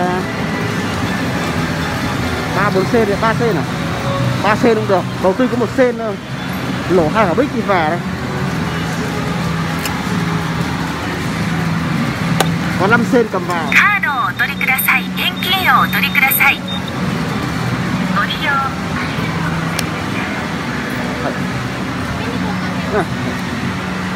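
Gaming machines chime and play electronic jingles in a noisy hall.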